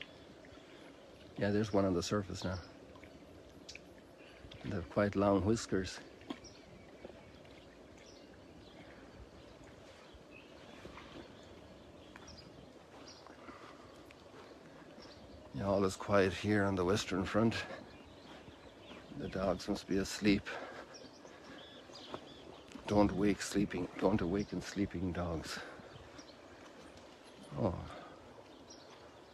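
Water gently laps and ripples.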